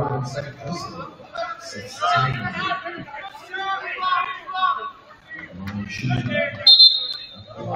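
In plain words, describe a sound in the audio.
Men and women in a crowd talk and call out in a large echoing hall.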